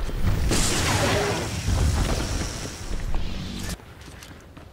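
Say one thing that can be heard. Energy blasts crackle and roar in a fight.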